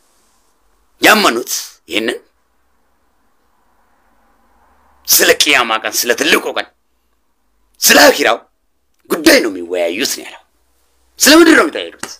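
A man speaks close up in short, animated bursts with pauses between.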